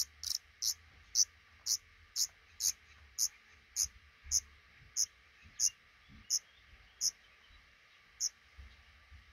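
Nestling birds cheep in short, high peeps at a steady pace, then fall quiet.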